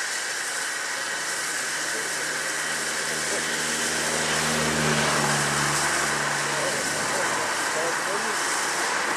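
A steam locomotive chuffs as it works slowly.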